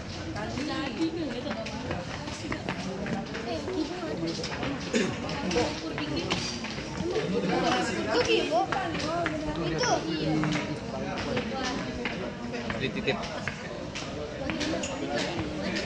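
Footsteps clatter on stairs.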